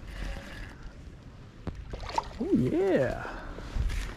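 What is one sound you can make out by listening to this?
A lure splashes into calm water.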